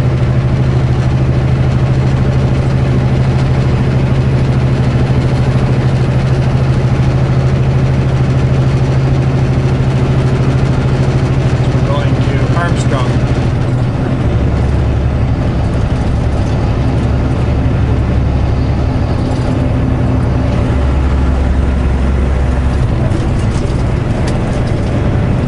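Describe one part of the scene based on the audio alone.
A vehicle engine hums steadily from inside the cab, shifting to a deeper drone partway through.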